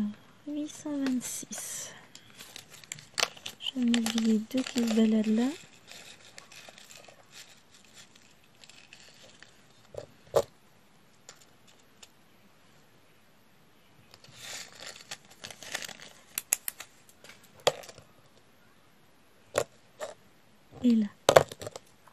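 Small plastic beads tap and click softly as they are pressed into place by hand.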